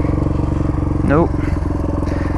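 A dirt bike engine revs up briefly.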